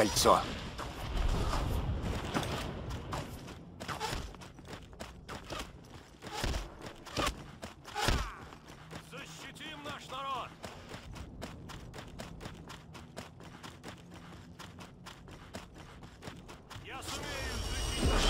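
Armoured footsteps run quickly on stone.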